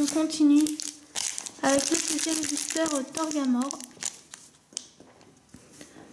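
A foil wrapper crinkles as it is handled.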